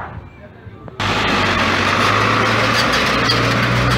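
A truck engine rumbles loudly close by.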